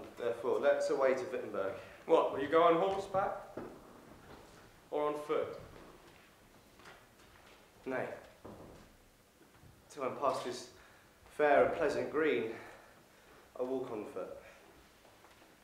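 A young man speaks expressively in bursts, with pauses, in a reverberant hall.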